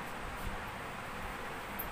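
A hand wipes a whiteboard with a cloth.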